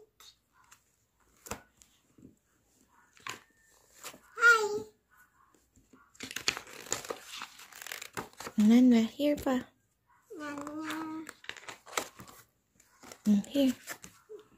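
Stiff book pages flap and rustle as they are turned.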